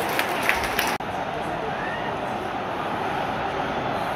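A large stadium crowd murmurs in an open-air stadium.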